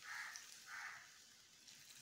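Milk pours into a pot.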